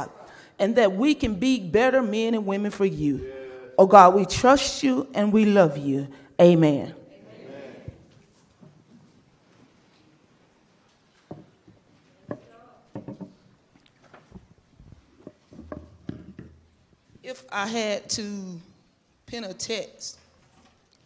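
A woman speaks with feeling into a microphone in a large echoing room.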